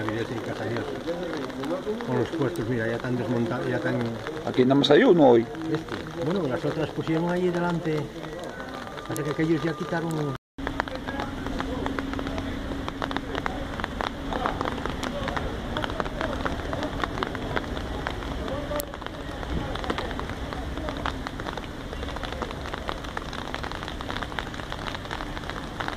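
Light rain patters steadily on a wet street.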